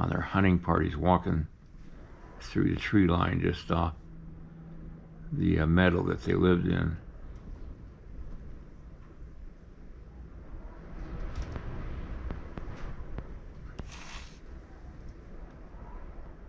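A metal tool scrapes softly against clay.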